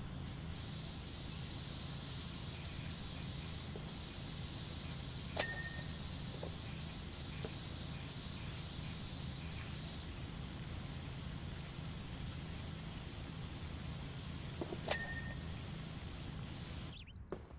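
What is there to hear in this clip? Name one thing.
A pressure washer sprays water in a steady hiss.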